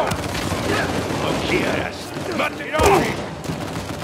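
Fists thud in a scuffle.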